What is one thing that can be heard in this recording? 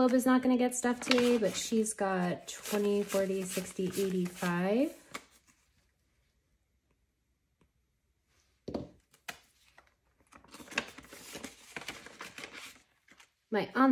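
Paper money rustles and crinkles as bills are handled and counted.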